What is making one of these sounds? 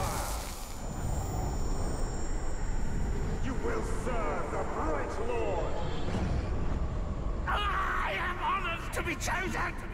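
A monstrous creature snarls and growls.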